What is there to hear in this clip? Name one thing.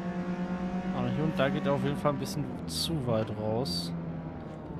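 A car engine revs up and down sharply as the gears shift down while braking.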